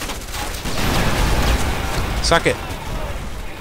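An explosion booms with a rumble.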